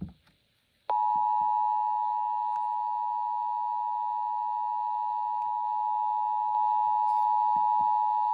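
A finger clicks a button on a radio.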